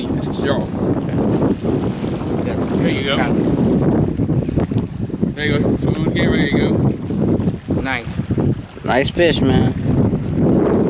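A man talks casually up close, outdoors.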